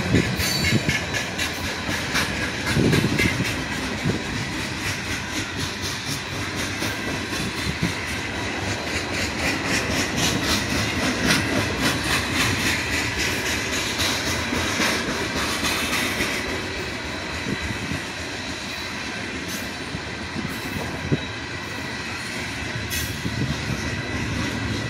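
Freight car wheels clack rhythmically over rail joints.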